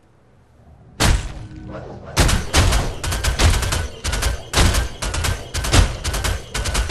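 Weapons fire and blasts burst in rapid succession.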